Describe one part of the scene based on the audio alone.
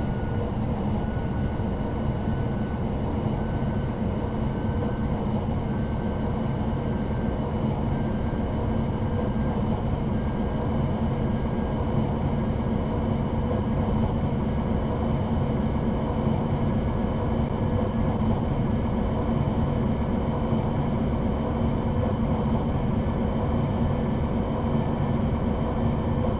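An electric motor whines, slowly rising in pitch as the train speeds up.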